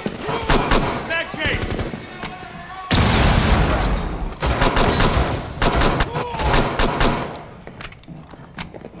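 Pistol shots fire in rapid bursts, echoing off nearby walls.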